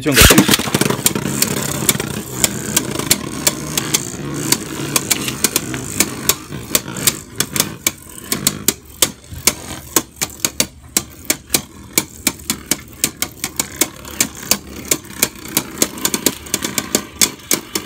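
Two spinning tops whir and grind in a plastic arena.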